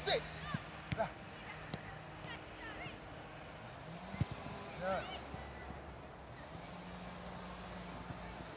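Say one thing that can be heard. A football is kicked with dull thuds on grass.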